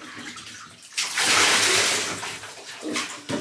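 Water pours from a container onto a dog.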